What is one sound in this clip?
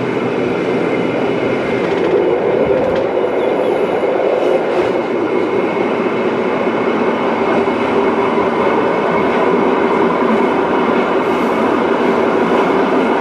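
A train car rumbles and rattles steadily as it rolls along the track.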